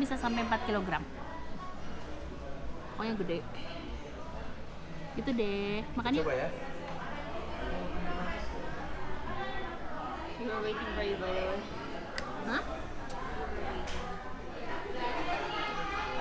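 A middle-aged woman talks calmly and close by.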